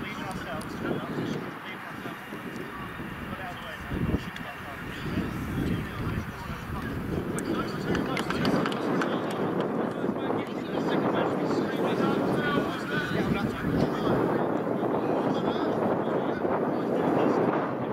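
Wind blows across an open field.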